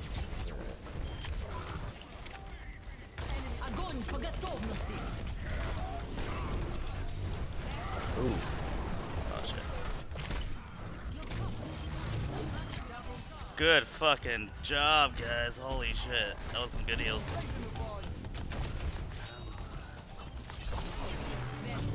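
Rapid electronic gunfire crackles and zaps.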